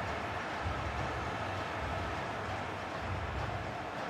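A football is struck hard.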